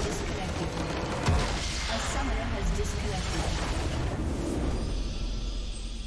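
A crystal structure shatters with a loud magical blast.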